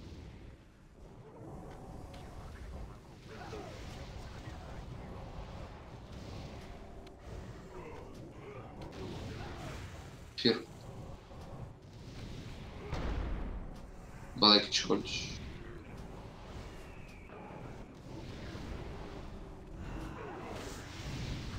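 Magic spells whoosh and crackle in a video game.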